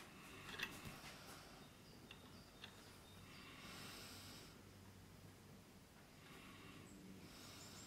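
Small metal parts click and clink as they are handled.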